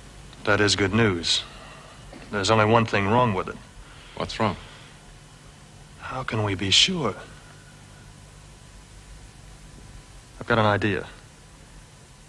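A man speaks in a low, tense voice, close by.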